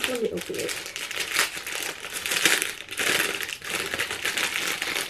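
A plastic bottle crinkles and rustles in hands.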